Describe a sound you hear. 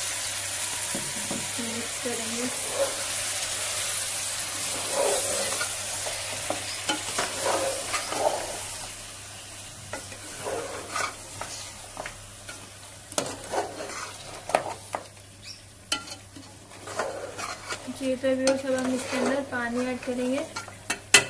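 A spatula scrapes and knocks against a metal pot.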